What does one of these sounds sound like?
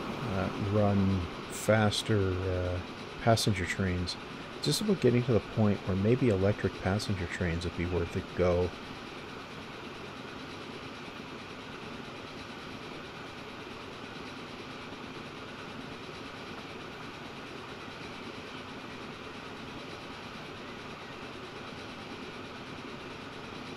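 A train rolls steadily along the tracks.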